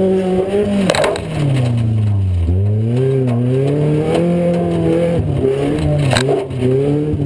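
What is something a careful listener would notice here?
Metal bangs sharply as the car hits something.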